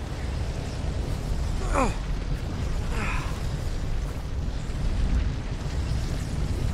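Wind howls in a snowstorm.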